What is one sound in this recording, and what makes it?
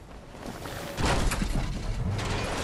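A heavy thud sounds on landing.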